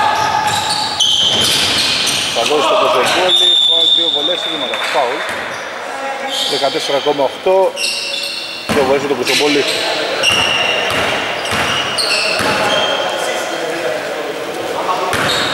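Sneakers squeak sharply on a hardwood court, echoing in a large gym.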